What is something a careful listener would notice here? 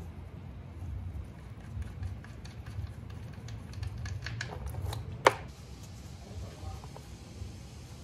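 Metal clicks and taps as a drain bolt is unscrewed by hand.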